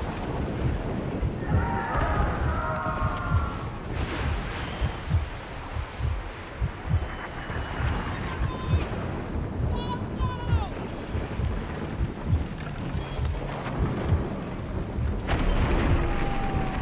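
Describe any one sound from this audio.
Waves rush and splash against a sailing ship's hull.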